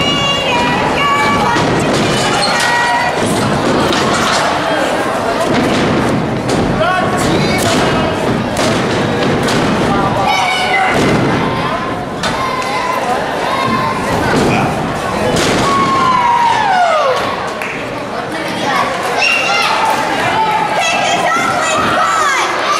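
Bodies slam against each other and onto the ring mat with loud thuds.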